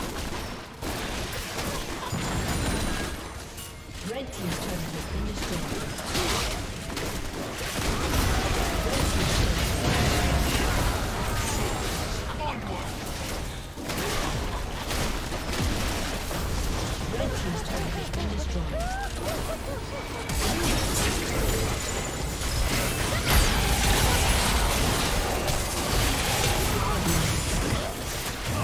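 Game battle effects clash and explode in quick bursts.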